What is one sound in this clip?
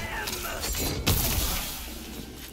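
An energy blast bursts with a crackling boom.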